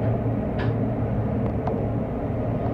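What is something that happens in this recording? Wheels click and clatter on the rails.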